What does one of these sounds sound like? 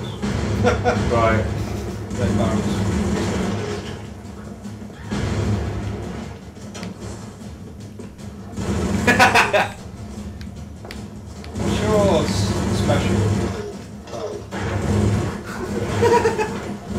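Young men talk and laugh excitedly nearby.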